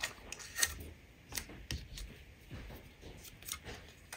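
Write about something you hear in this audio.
Strips of card rustle and tap as they are handled.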